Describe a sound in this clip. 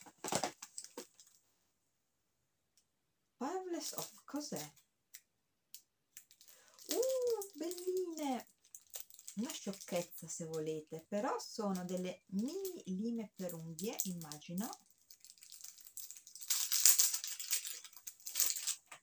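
Plastic packaging crinkles as it is handled.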